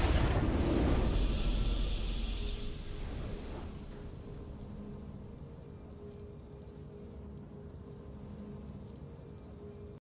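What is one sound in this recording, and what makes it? A bright game victory fanfare bursts out and slowly fades.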